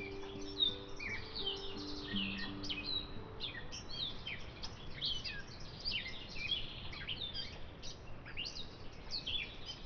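Kittens scuffle and pounce on cardboard and dry leaves.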